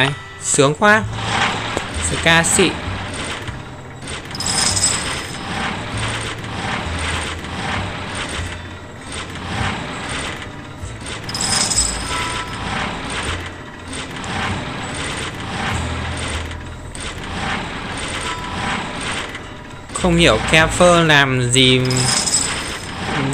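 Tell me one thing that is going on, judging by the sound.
Slot machine reels spin with jingling game music.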